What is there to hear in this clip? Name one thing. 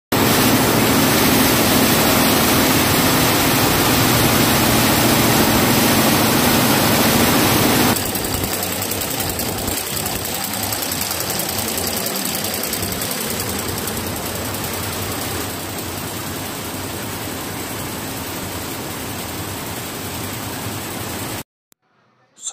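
Embroidery machines hum and rattle steadily, with needles stitching rapidly.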